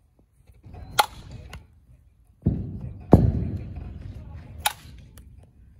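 A bat sharply cracks against a softball several times.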